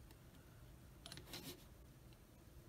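A plastic cap clicks as it is unscrewed from a small glass bottle.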